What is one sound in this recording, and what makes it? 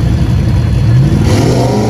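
A car's engine revs up sharply.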